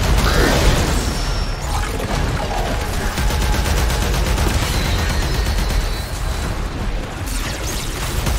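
Heavy gunfire rattles and booms.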